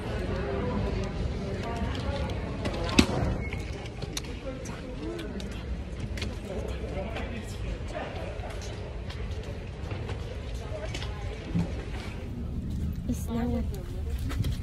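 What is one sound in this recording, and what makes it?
A young woman talks casually and close up.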